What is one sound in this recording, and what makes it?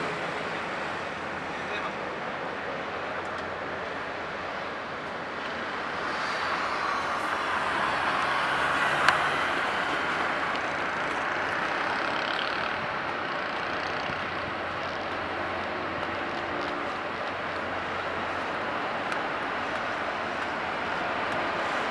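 A large ferry's engines rumble steadily as it glides past.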